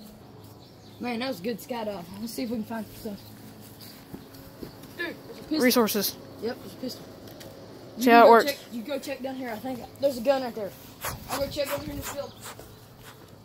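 A teenage boy talks with animation close by.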